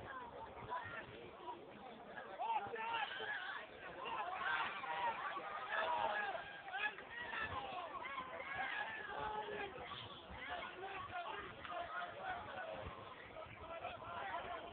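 Young players shout and call to each other across an open field.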